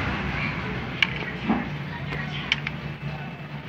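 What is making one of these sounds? Plastic wire connectors click and snap together.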